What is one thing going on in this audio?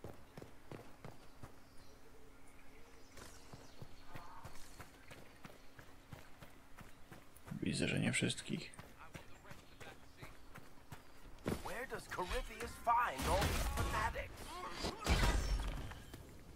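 Footsteps crunch over stone and rubble.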